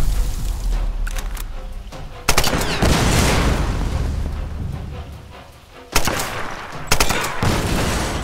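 A gun fires.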